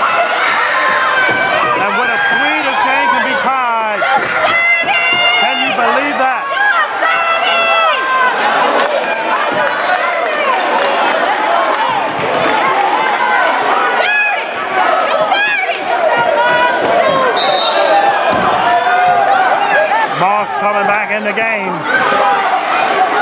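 Many voices chatter and shout in a large echoing hall.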